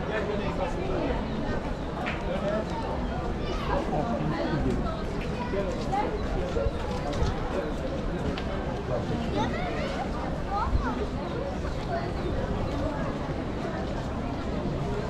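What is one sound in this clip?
Footsteps shuffle on stone paving.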